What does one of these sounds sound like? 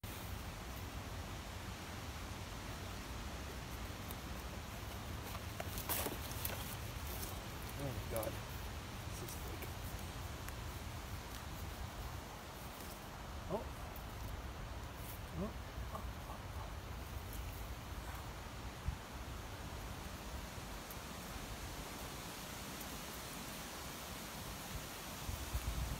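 A knife scrapes and cuts into a tough bracket fungus.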